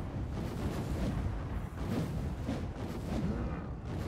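A weapon swooshes through the air in strikes.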